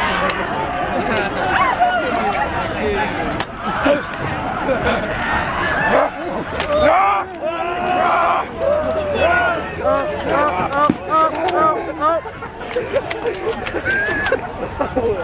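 A crowd of young people shouts and screams outdoors.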